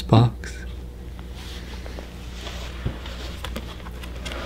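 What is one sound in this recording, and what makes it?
Pages of a book rustle as a man turns them.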